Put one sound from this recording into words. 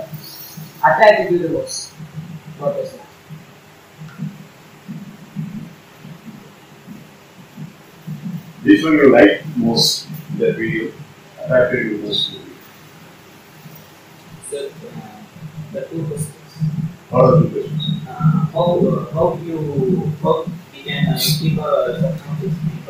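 A boy speaks with many pauses.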